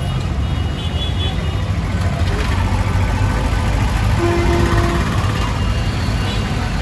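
Three-wheeler engines idle and putter nearby outdoors.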